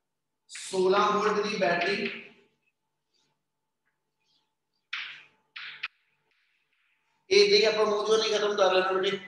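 A man speaks clearly and steadily, like a teacher explaining.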